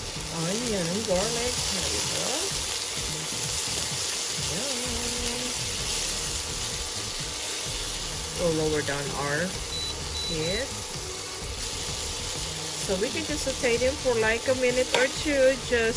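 Tongs scrape and stir food in a metal pan.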